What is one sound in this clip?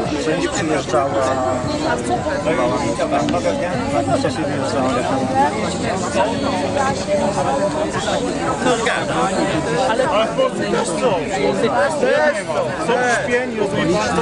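A crowd of men and women talk and shout outdoors, many voices overlapping loudly.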